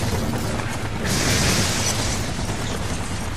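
An electric bolt crackles and zaps loudly.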